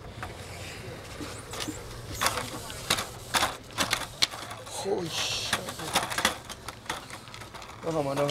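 Skateboard wheels clatter and scrape along a metal railing.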